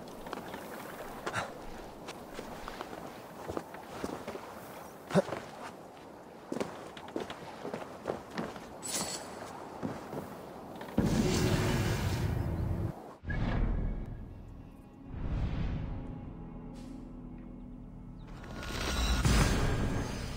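A climber's hands and feet scrape and knock on rock.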